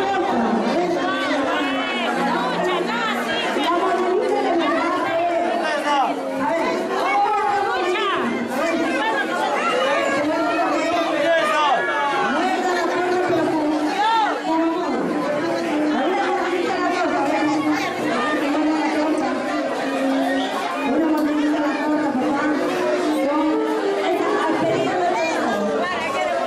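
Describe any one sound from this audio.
A crowd of men and women sings together loudly in a room.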